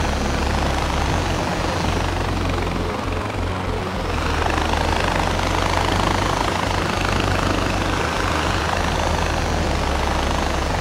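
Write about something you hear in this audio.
A zipline trolley whirs steadily along a cable.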